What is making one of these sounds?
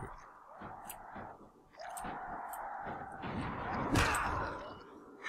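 A blunt weapon smacks wetly into flesh again and again.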